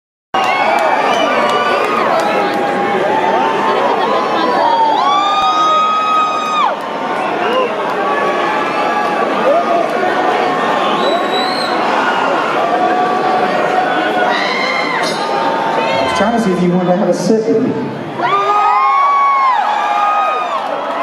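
A large crowd cheers, screams and whistles loudly in an echoing hall.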